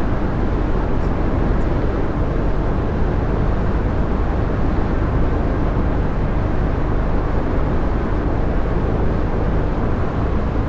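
Tyres roll steadily on a road.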